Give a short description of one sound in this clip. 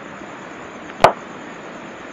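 A cue ball strikes a pool ball with a sharp click.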